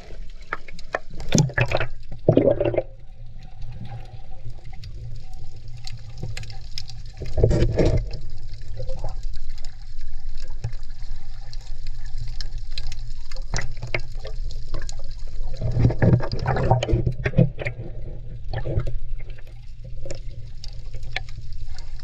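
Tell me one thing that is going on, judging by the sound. Water sloshes and bubbles close by, heard underwater.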